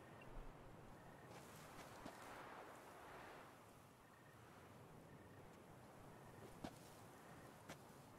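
A fire crackles softly in the distance.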